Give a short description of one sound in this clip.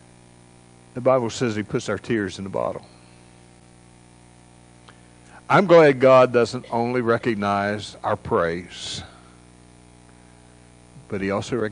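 An older man speaks calmly into a microphone, with pauses, in a reverberant hall.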